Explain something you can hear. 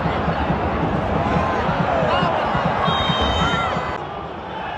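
Fans whistle shrilly in a stadium crowd.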